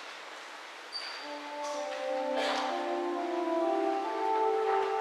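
A man sings a chant through a microphone in an echoing hall.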